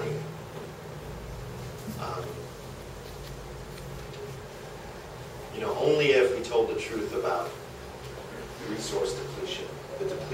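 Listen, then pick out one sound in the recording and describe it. A man speaks with animation through a microphone and loudspeaker.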